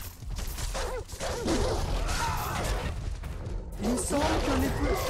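Blades swish and slash repeatedly in a fast fight.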